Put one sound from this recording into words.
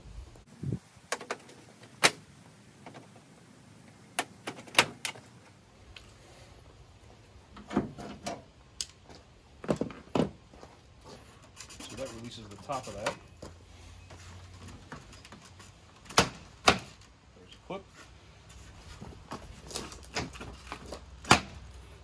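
Plastic clips click and snap.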